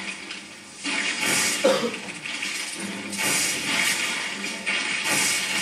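Fighting sounds and blasts play loudly from a television speaker.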